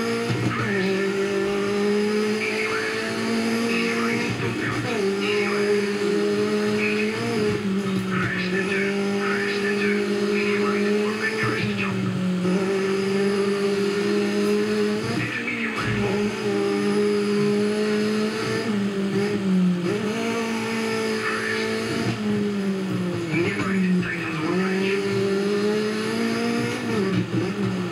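A rally car engine in a video game revs hard and shifts gears, heard through loudspeakers.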